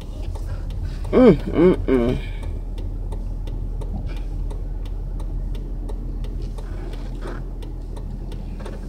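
A car engine hums steadily in the background.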